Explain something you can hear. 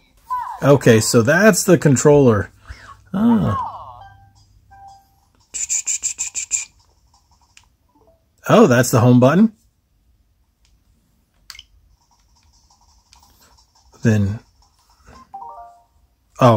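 Buttons on a game controller click softly.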